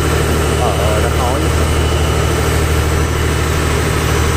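A gas burner roars steadily under a pot.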